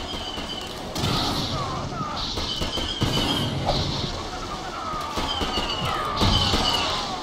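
Laser blasts zap and explode nearby.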